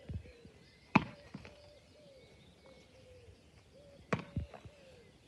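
A rugby ball thuds into a man's hands as it is caught.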